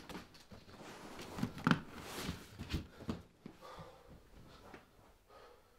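A hand rubs and pats a leather cushion.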